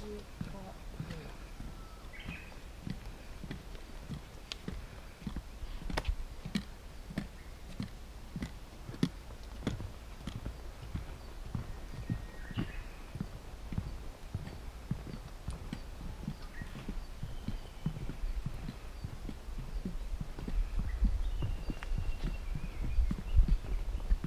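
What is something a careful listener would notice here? Footsteps thud steadily on a wooden boardwalk.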